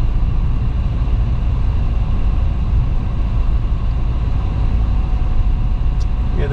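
Tyres roll on smooth asphalt with a low rumble.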